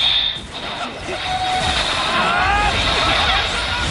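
A loud magical blast bursts and crackles.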